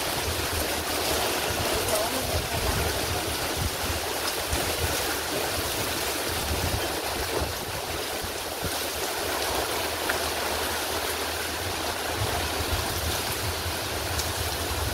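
Heavy rain pours down, hissing on wet ground.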